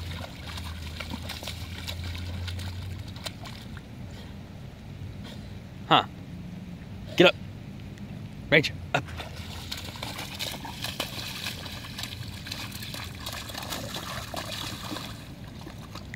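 A dog splashes and paddles through a shallow puddle of water.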